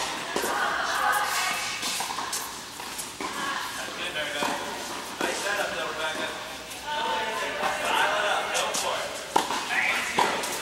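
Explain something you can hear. Young women call out across the court.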